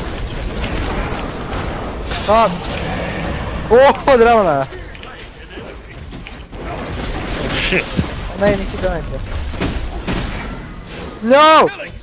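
Magic spells crackle and burst in a fight.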